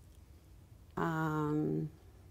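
An older woman speaks calmly, close to the microphone.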